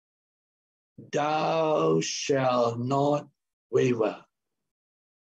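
A middle-aged man speaks emphatically over an online call.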